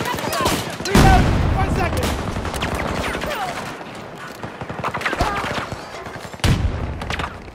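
A sniper rifle fires single loud shots that boom and echo.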